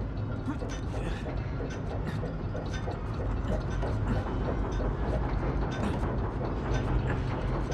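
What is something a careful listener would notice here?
Hands grip and scrape on large metal gears.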